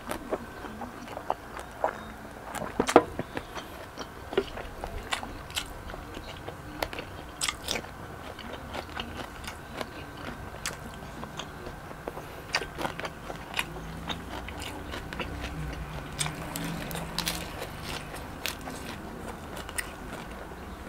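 A young man chews food loudly and wetly, close to a microphone.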